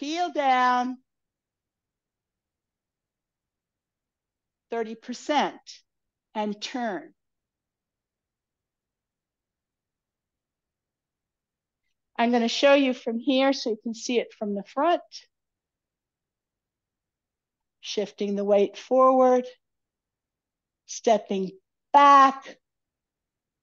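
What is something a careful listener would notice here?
An older woman speaks calmly into a headset microphone.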